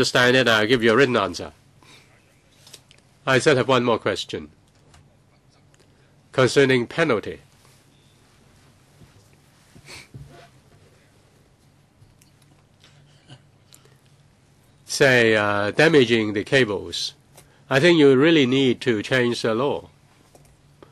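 A middle-aged man speaks into a microphone in short, halting bursts.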